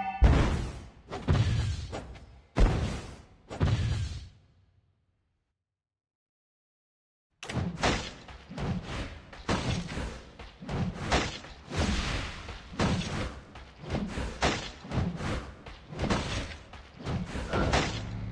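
Magic blasts and hits crackle in quick bursts.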